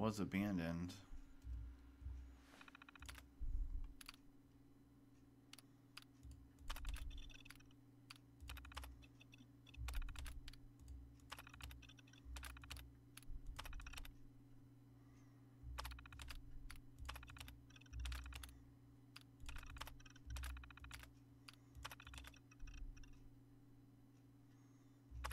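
A computer terminal hums steadily.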